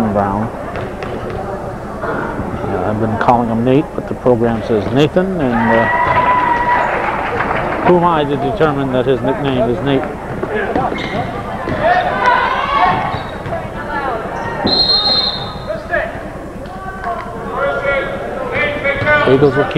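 Spectators cheer and shout in an echoing gym.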